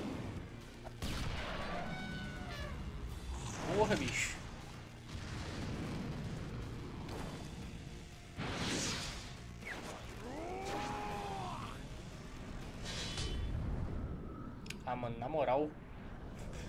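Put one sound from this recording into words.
Heavy punches thud and crash in a fight.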